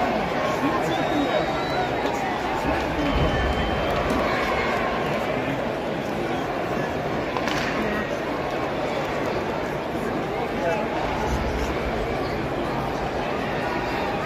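A large crowd murmurs and chatters steadily in a big echoing arena.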